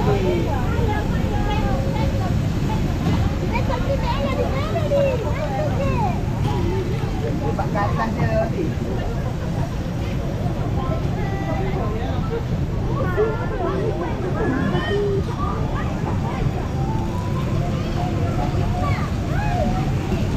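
A crowd chatters and calls out.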